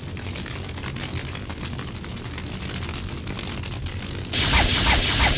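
Magical flames flicker and hiss softly.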